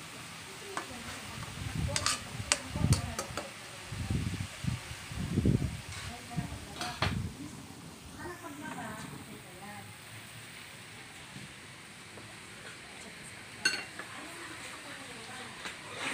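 Meat sizzles in a hot pan.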